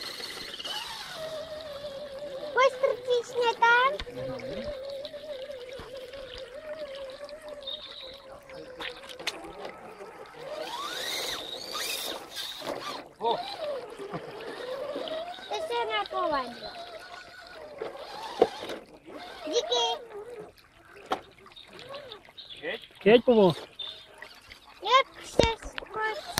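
A small electric motor whines, rising and falling in pitch.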